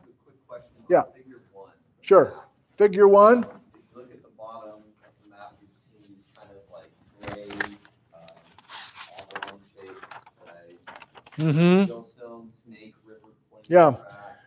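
Paper rustles as a man handles sheets.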